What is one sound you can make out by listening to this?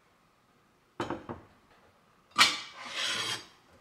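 A metal pot knocks softly against a shelf.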